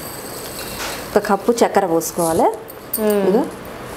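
Sugar pours into a metal pot.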